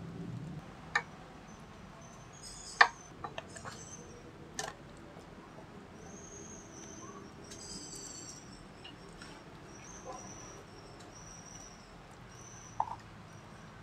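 A metal spoon scrapes and taps against a metal tray.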